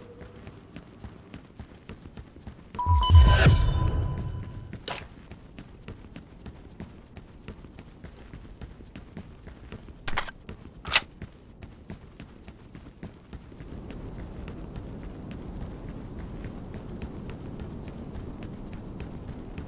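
Footsteps patter steadily on a hard floor.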